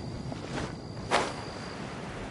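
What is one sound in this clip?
A glider flaps open with a whoosh.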